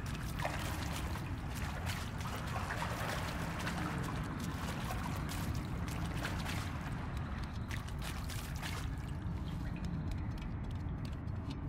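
Water trickles and drips steadily.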